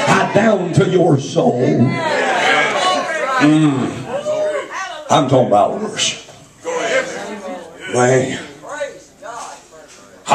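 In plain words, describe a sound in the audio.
A middle-aged man preaches with animation into a microphone over loudspeakers in an echoing room.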